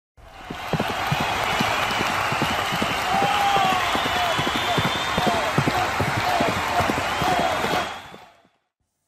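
Horses gallop with rapid thudding hoofbeats.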